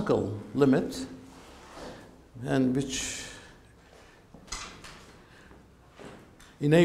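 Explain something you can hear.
An elderly man speaks calmly, lecturing in a room with a slight echo.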